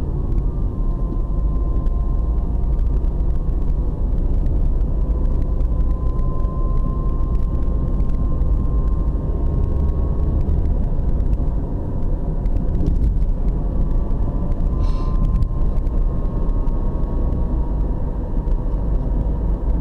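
Tyres roll over asphalt with a low rumble.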